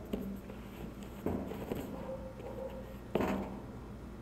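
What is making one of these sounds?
A box thuds softly onto a wooden shelf.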